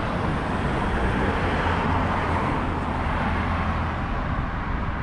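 A car passes close by.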